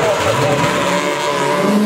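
Car tyres squeal on the road.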